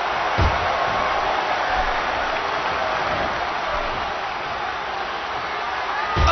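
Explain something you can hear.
A large crowd cheers and roars steadily in an echoing arena.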